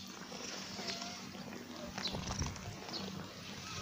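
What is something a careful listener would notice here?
A hand strokes a cat's fur with a soft rustle.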